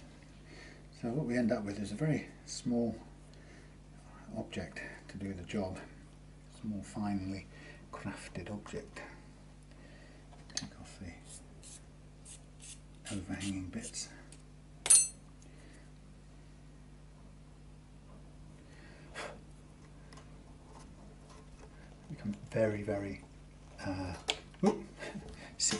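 A man talks calmly, close by.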